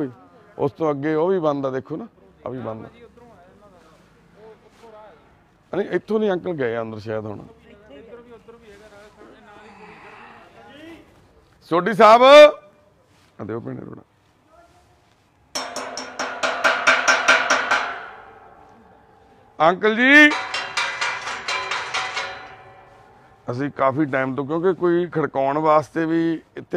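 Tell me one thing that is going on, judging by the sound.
A man calls out loudly nearby, outdoors.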